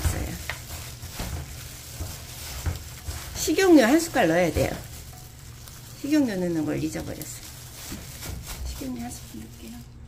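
Gloved hands toss crisp vegetables in a pan with soft rustling and crinkling.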